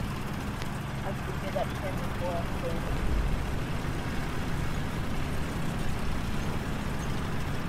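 A tank engine rumbles steadily as the vehicle drives along.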